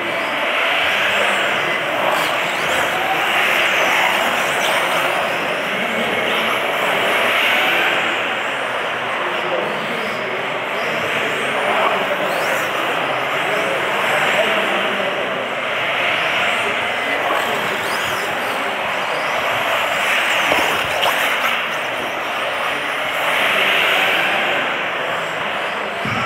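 Small electric motors whine at high pitch as model cars race, rising and falling with speed.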